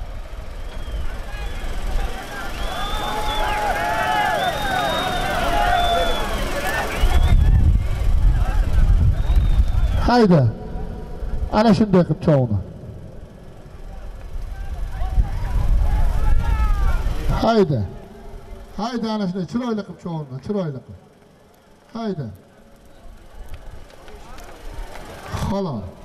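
A crowd of men shouts outdoors.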